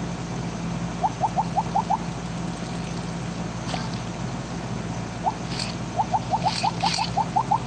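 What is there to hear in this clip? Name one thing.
Short rising electronic blips sound in quick runs, like a game's pickup sounds.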